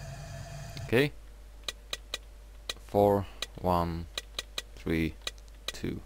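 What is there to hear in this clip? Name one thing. A combination lock's wheels click as they turn.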